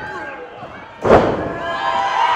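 A wrestler slams onto a wrestling ring mat with a heavy thud.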